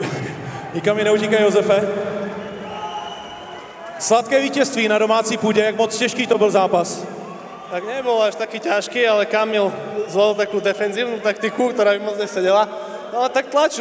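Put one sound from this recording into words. A young man answers into a microphone, heard over loudspeakers.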